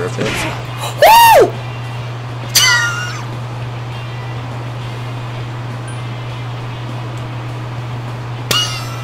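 Electronic menu blips chime as options are selected.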